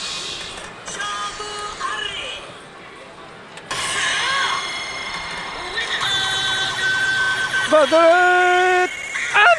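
A slot machine plays loud electronic music and sound effects.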